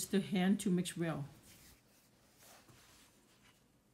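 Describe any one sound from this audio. Hands knead soft dough.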